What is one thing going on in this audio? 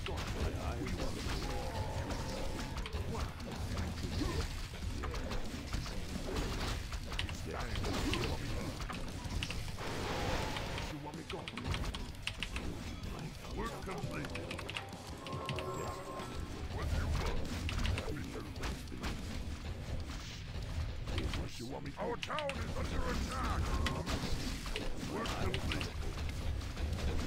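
Swords clash and spells crackle in a fantasy battle.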